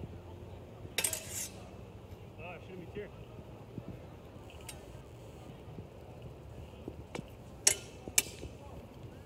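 Padded swords clack sharply together.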